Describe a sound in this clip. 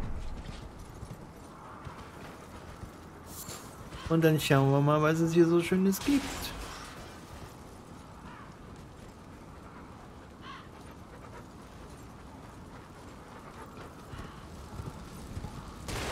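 Horse hooves clop on rocky ground.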